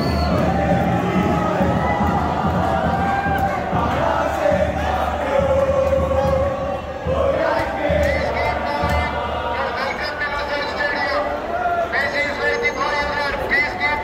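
A large crowd of men and women sings and chants loudly together, echoing in a large hall.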